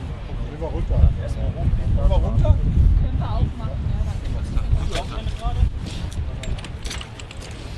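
Men talk calmly close by, outdoors.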